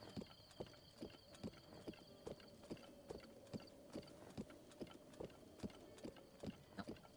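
Horse hooves thud in a steady galloping rhythm.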